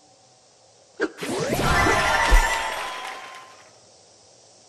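A burst of sparkling, magical game jingles swells and fades.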